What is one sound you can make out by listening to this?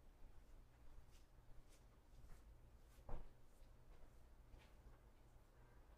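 Footsteps tread softly across a hard floor.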